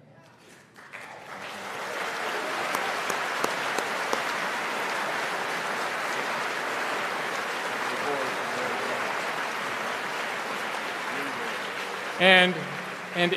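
An elderly man claps his hands.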